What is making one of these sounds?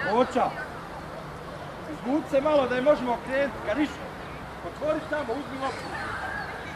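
Young men shout to each other at a distance outdoors.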